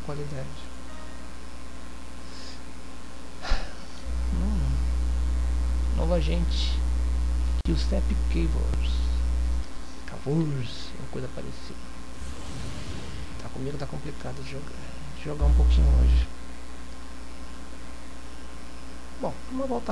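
A spaceship engine hums steadily.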